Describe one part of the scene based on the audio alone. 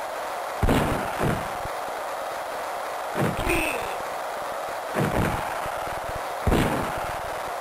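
Heavy body checks thud and crunch repeatedly.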